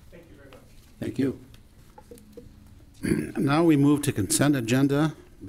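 A man speaks calmly through a microphone and loudspeakers.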